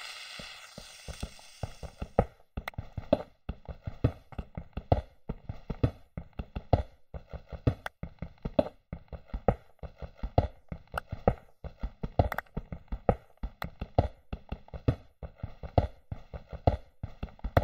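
A pickaxe digs rapidly into stone and gravel with repeated crunching knocks.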